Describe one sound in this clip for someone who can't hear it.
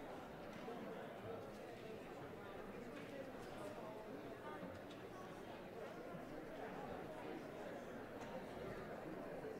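A crowd of people chatter and murmur throughout a large echoing hall.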